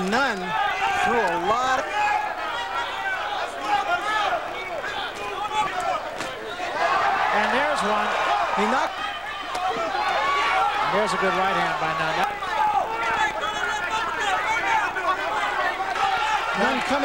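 A crowd cheers and shouts in a large arena.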